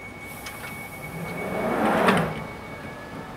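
Train doors slide shut with a loud whoosh.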